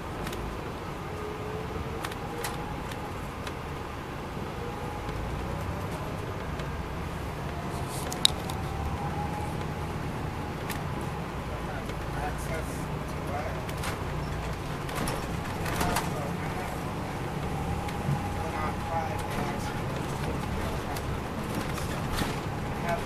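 A diesel coach bus's transmission whines, rising and falling in pitch.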